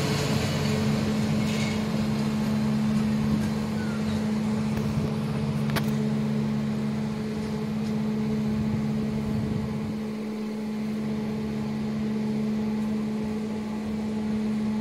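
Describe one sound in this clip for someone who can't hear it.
A locomotive engine drones steadily with a low hum.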